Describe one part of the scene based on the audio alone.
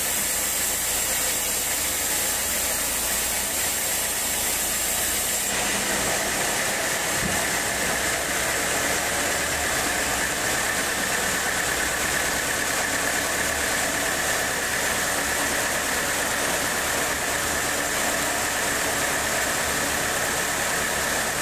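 A large band saw whines loudly as it cuts through a log.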